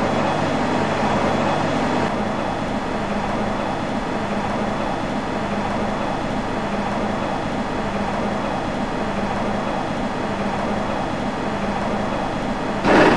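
Train wheels rumble and clatter over rail joints.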